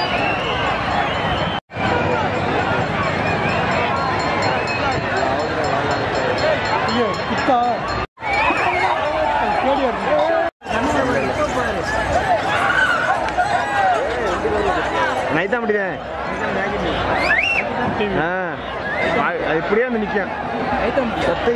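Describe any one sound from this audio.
A large crowd of men shouts and cheers outdoors.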